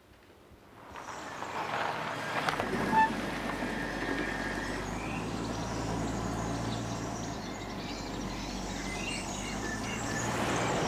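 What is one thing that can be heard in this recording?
A car engine hums as the car drives slowly along.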